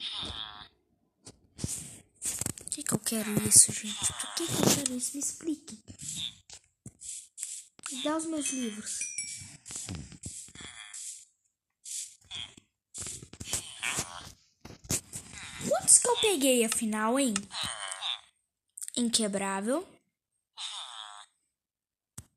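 A child talks with animation close to a microphone.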